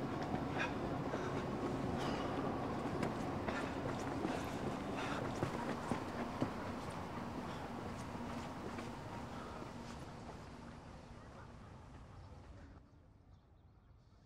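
Footsteps walk along a paved path.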